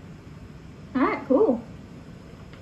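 A young woman speaks into a phone.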